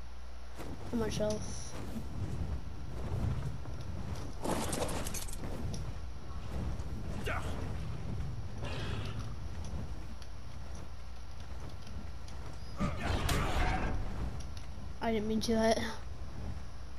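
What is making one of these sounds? A large creature lets out loud calls.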